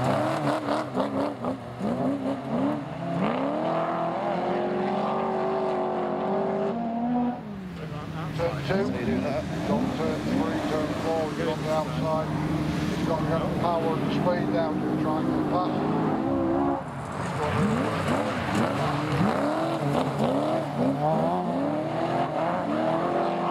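Car engines roar and rev loudly as small cars race close by.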